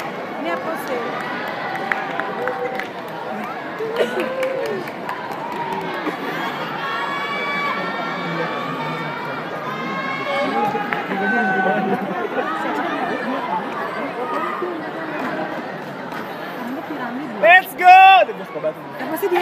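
A large crowd chatters and cheers in a big echoing hall.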